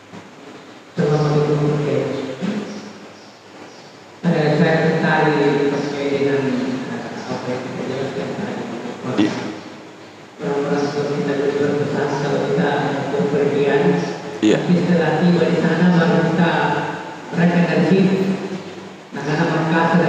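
An elderly man speaks calmly into a close microphone in an echoing room.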